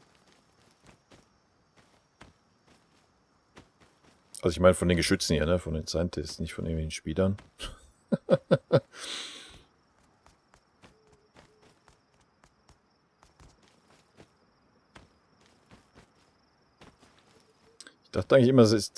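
Footsteps crunch softly on the forest floor.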